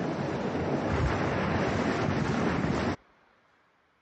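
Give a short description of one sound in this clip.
A waterfall pours close by.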